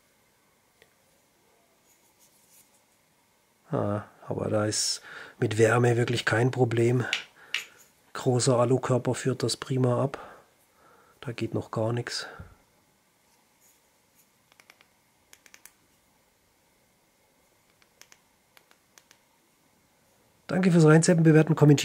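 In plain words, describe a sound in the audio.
A flashlight button clicks.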